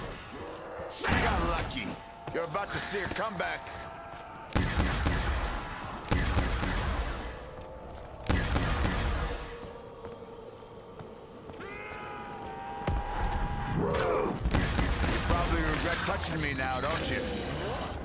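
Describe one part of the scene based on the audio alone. Zombies growl and moan nearby.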